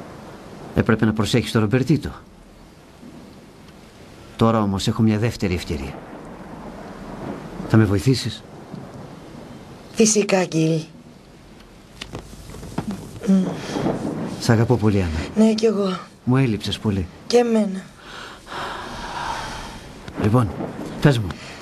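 A man speaks softly and emotionally, close by.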